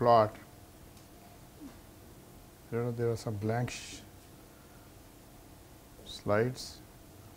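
A middle-aged man speaks slowly and calmly into a microphone, with pauses.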